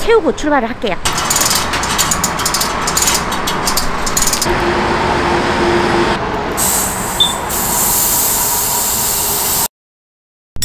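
Compressed air hisses from a tyre hose.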